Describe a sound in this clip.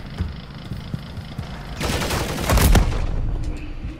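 A chainsaw revs and roars.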